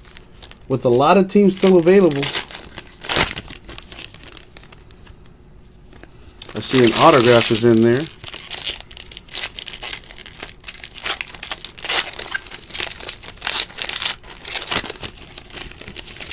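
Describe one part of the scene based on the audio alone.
Foil card packs crinkle and rustle as hands tear and handle them.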